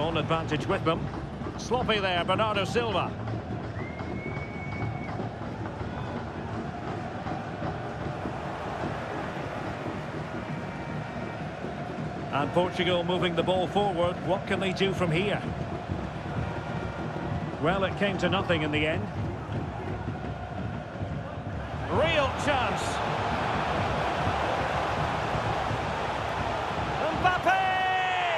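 A large stadium crowd roars and cheers steadily, swelling loudly near the end.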